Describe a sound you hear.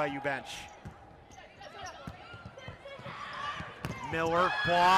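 A volleyball is struck hard several times.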